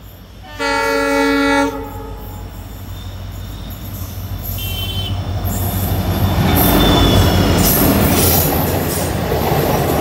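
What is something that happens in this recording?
A diesel locomotive approaches and roars past close by.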